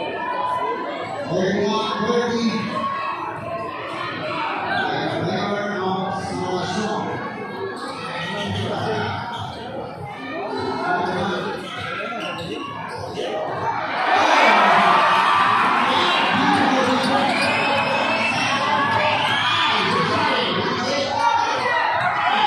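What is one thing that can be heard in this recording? A large crowd chatters and shouts in an echoing hall.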